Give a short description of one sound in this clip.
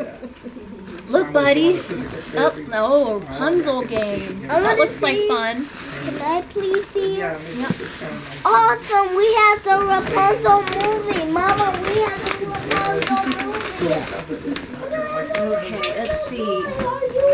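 Wrapping paper rustles and crinkles.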